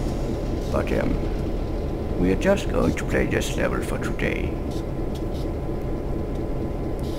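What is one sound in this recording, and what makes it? A diesel locomotive engine rumbles low and steady.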